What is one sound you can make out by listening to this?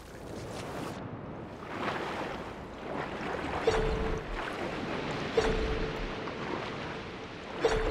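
Water swirls and bubbles steadily underwater.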